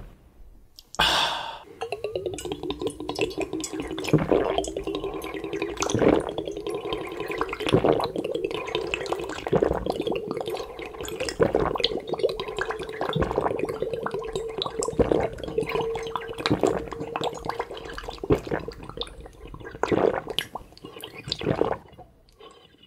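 A man slurps and sucks liquid noisily from a glass.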